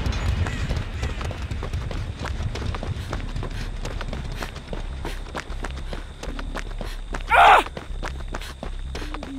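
Footsteps rustle quickly through dry grass and leaves.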